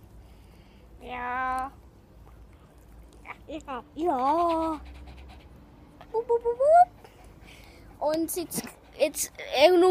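A young boy talks close by, with animation.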